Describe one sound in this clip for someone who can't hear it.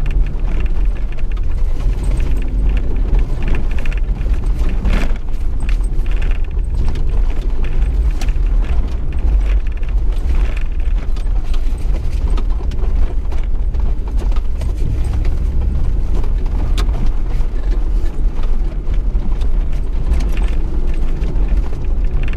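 A four-wheel-drive engine hums as the vehicle crawls in low gear.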